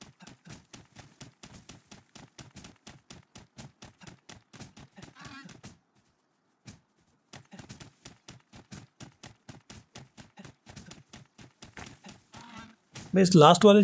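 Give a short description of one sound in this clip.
Rock is struck in quick, steady blows.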